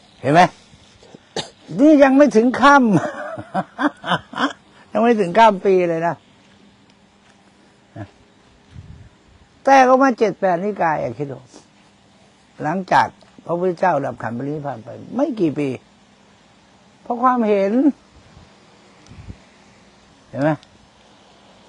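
An older man speaks calmly into a clip-on microphone, pausing often.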